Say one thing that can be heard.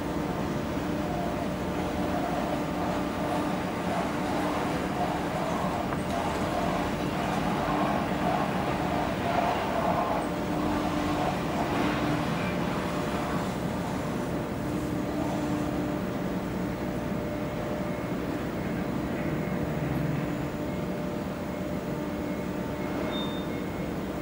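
Water churns behind a moving boat.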